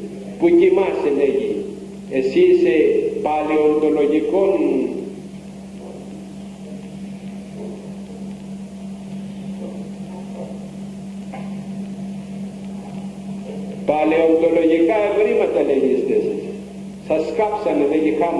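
An elderly man speaks emphatically through a microphone and loudspeakers, with pauses.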